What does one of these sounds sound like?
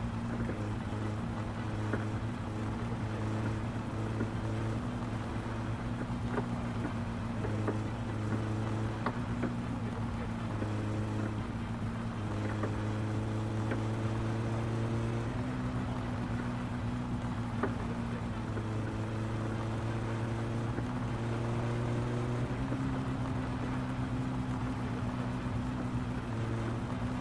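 A car engine drones steadily, shifting pitch as gears change.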